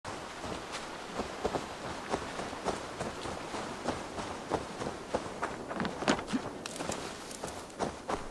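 Footsteps crunch steadily on soft ground.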